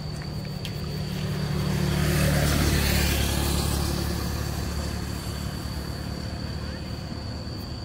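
Sandals slap on pavement as a woman walks close by.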